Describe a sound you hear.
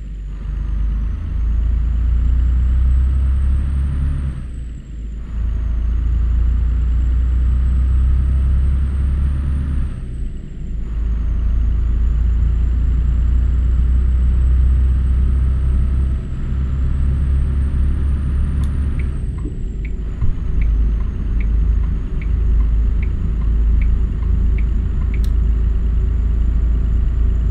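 A truck engine drones low and steady as it speeds up.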